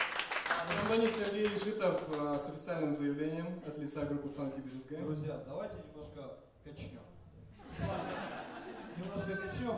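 A man talks through a microphone on stage.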